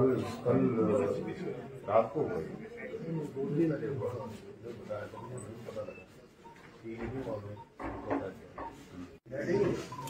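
Men talk to each other in low voices nearby.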